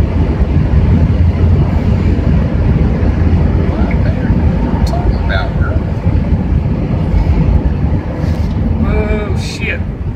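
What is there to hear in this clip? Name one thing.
A car engine hums steadily as tyres roll over a highway.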